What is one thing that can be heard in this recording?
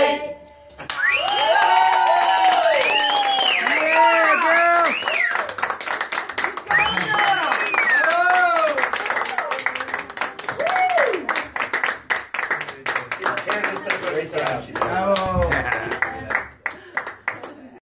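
An audience claps along steadily.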